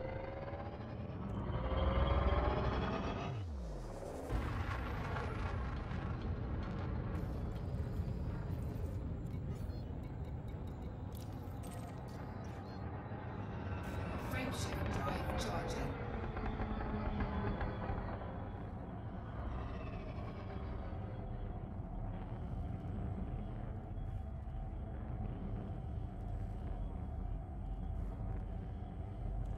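A spaceship engine rumbles and hums steadily.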